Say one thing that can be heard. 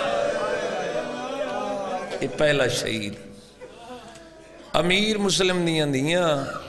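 A man speaks passionately into a microphone, heard through a loudspeaker.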